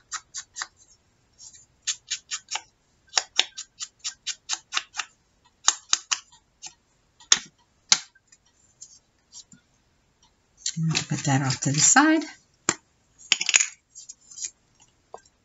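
Paper rustles and crackles as it is handled close by.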